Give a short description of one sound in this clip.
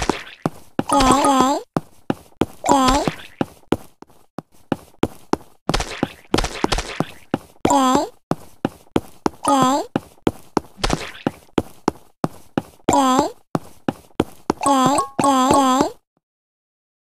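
Cartoon creatures let out short, squeaky, rising cries again and again.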